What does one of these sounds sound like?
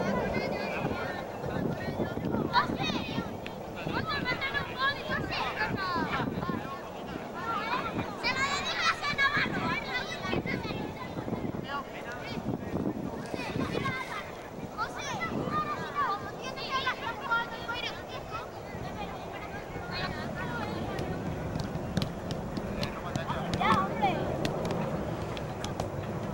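Children shout and laugh excitedly outdoors.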